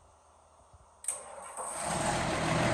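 A tractor's diesel engine starts with a click and then rumbles loudly.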